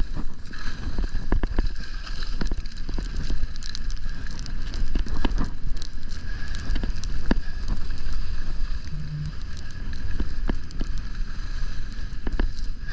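Wind rumbles against the microphone.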